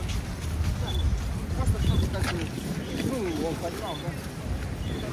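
Men and women murmur as they walk past nearby.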